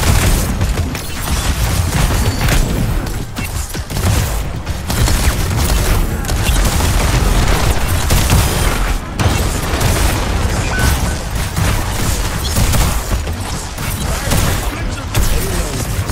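Energy shots crackle and whoosh.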